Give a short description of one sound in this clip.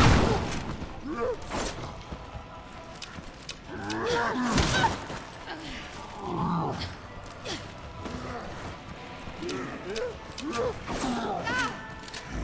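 Monsters growl and groan.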